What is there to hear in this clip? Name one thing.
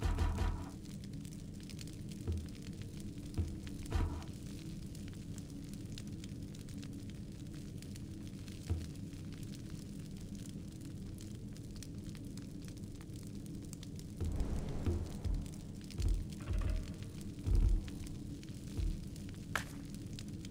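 Soft game menu clicks sound as options are selected.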